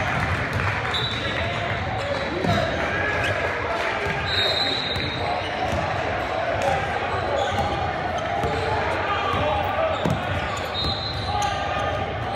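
Basketball shoes squeak on a gym floor.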